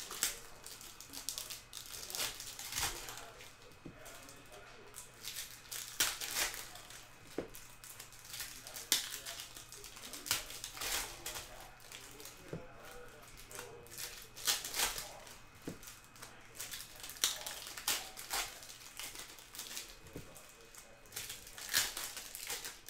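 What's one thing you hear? Foil wrappers crinkle and rustle close by.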